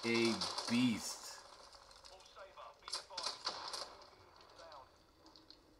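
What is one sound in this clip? Game gunfire crackles in short bursts from a small speaker.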